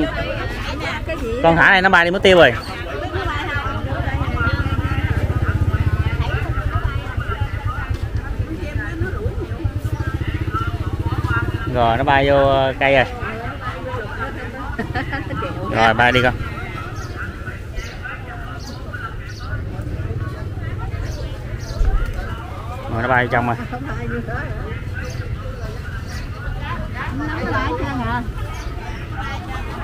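Many people chatter in the background outdoors.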